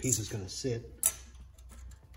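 A metal ruler taps against steel.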